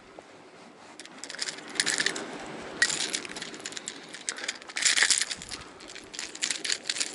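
Metal pliers click and scrape against a fishing lure's hooks.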